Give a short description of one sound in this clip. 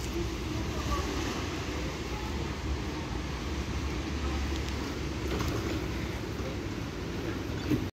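Tram wheels squeal and clatter on the rails.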